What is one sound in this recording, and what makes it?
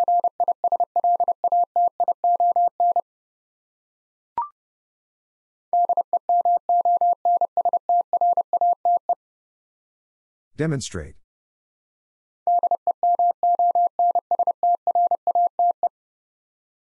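Morse code beeps out in rapid, steady high tones.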